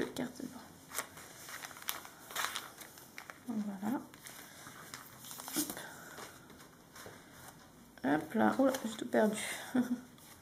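Paper sheets rustle and slide as hands handle them.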